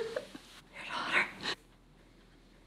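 A woman speaks softly and tearfully up close.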